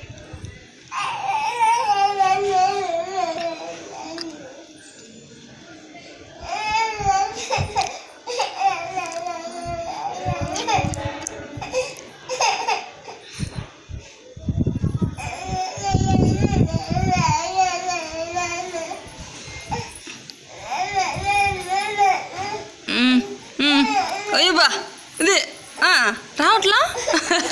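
A toddler cries and wails loudly close by.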